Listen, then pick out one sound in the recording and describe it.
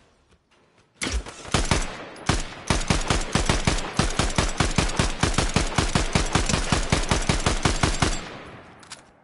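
An assault rifle fires rapid bursts of shots.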